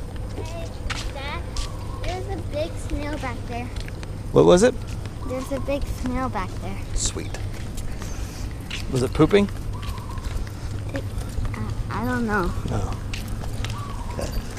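A young boy talks and laughs close by.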